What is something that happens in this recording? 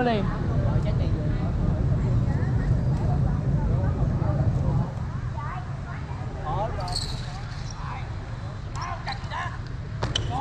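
Bicycle tyres roll over paving stones.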